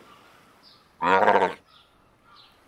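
A seal lets out a loud, harsh bark close by.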